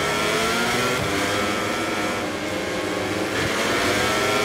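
A motorbike engine shifts gears with sudden drops in pitch.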